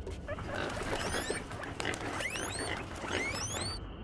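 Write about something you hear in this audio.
A bird lets out sharp, rising calls.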